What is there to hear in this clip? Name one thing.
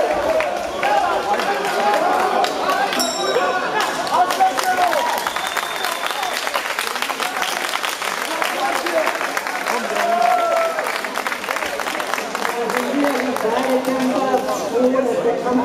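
A crowd of spectators talks and shouts in a large echoing hall.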